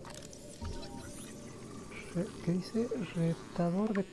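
A scanning tool whirs while scanning a creature.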